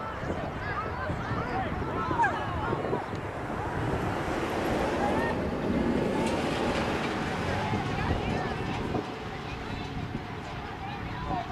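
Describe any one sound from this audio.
Spectators chat and call out outdoors.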